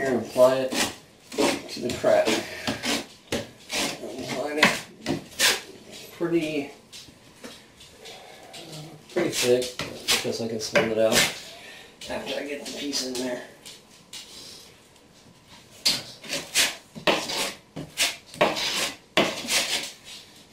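A trowel scrapes mortar across a board.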